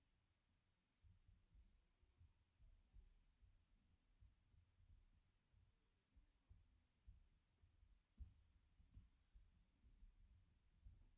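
Children's footsteps thump softly on a stage floor.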